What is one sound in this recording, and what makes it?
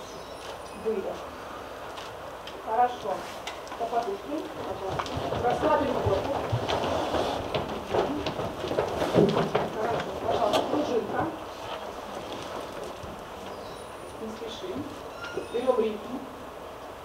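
A group of children sing and call out together in a large echoing hall.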